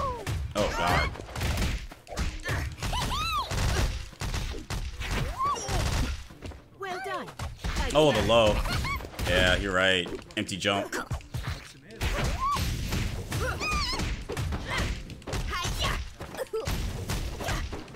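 Cartoon characters cry out and grunt in high voices.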